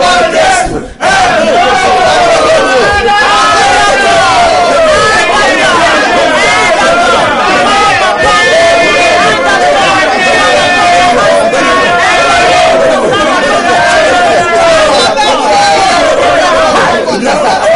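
A man sings along into a microphone.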